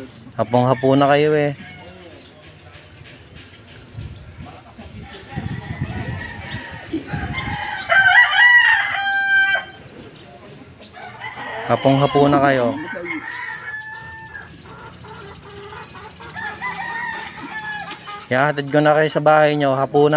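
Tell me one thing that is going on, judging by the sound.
An elderly man talks nearby in a hoarse, animated voice.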